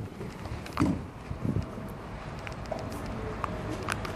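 A car door clunks open.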